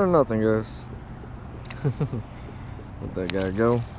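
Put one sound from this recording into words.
A fish splashes briefly in shallow water.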